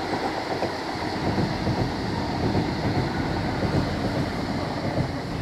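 A train rumbles steadily along the tracks nearby.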